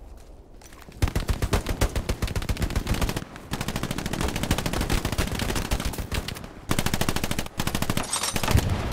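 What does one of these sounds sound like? A handheld radio crackles and sputters with rapid bursts of static.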